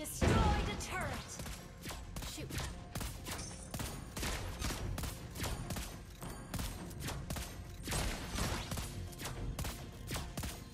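Game sound effects clash and zap in quick bursts.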